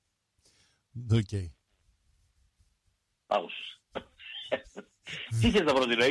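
A man talks with animation into a microphone, heard over the radio.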